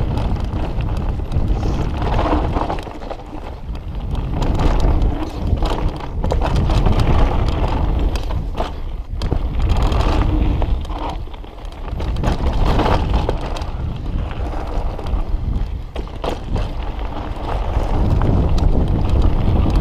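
Bicycle tyres crunch and rattle over a dirt trail.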